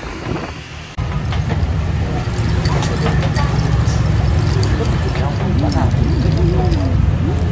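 Young men and women chat casually close by.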